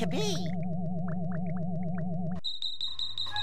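A cheerful video game tune plays.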